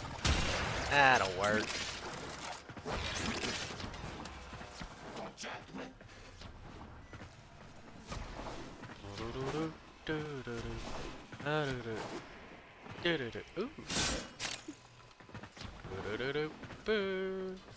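A blade swishes through the air.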